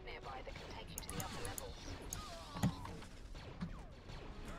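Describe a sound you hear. A lightsaber clashes with a sharp crackle.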